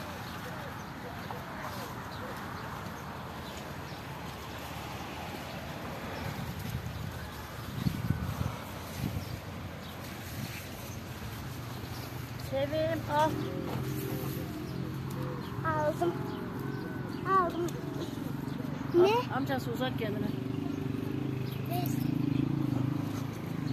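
Leaves rustle as plants are handled up close.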